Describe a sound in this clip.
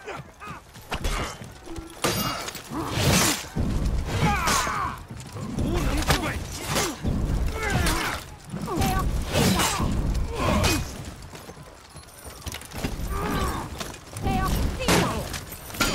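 Steel blades clash and clang in a fight.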